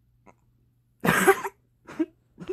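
A teenage boy laughs loudly close to a microphone.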